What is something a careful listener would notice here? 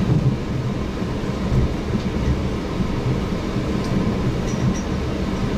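A train rumbles steadily along an elevated track.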